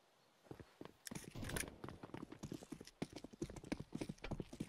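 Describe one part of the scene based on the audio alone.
Metal clicks and rattles as a pistol is handled.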